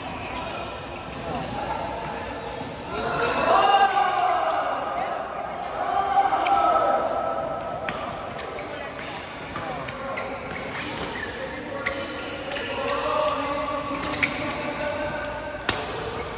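Badminton rackets hit shuttlecocks with sharp pops in a large echoing hall.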